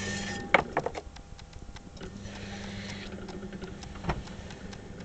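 A potter's wheel hums steadily as it spins.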